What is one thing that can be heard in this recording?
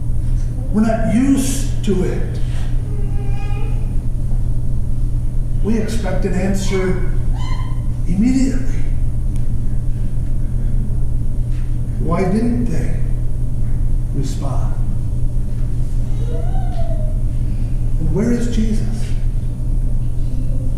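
A man speaks slowly with long pauses into a microphone in an echoing room.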